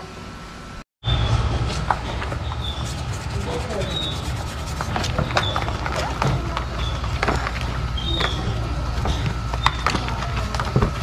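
Soapy water squelches as hands rub a shoe.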